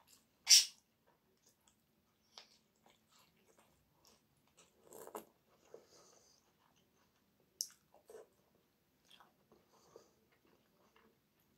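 A woman chews food close by.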